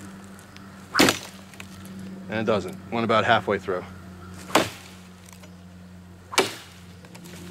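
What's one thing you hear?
A hand saw cuts into a wooden branch with sharp strokes.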